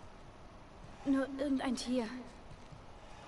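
A young girl answers briefly.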